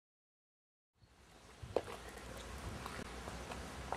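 A man's footsteps scuff on wet pavement outdoors.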